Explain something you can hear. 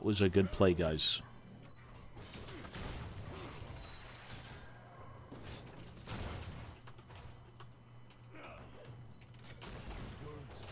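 Fantasy game spells whoosh and crackle in a fight.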